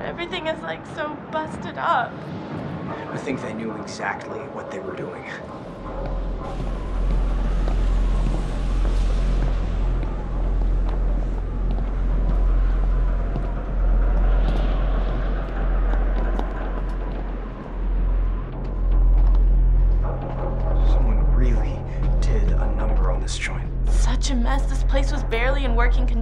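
A young woman speaks with annoyance, close by.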